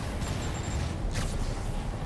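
A helicopter's rotor thumps overhead.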